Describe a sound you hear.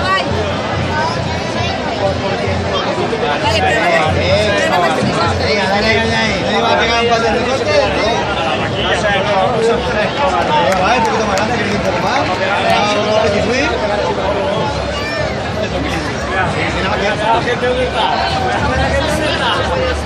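A crowd of men and women chatter and shout excitedly nearby, outdoors.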